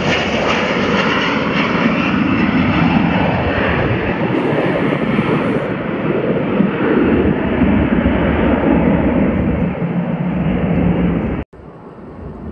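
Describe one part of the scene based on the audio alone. A jet airliner roars loudly as it climbs away.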